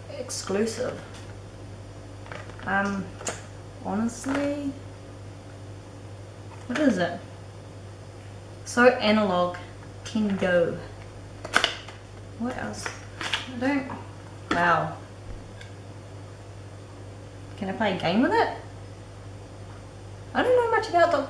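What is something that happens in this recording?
A young woman talks close by, casually, with pauses.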